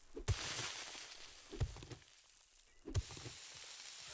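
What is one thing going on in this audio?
A pickaxe strikes rock with heavy thuds.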